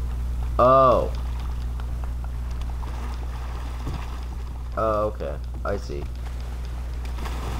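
Water splashes as someone swims.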